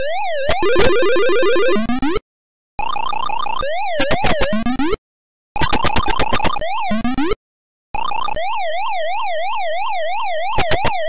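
An electronic game siren warbles up and down steadily.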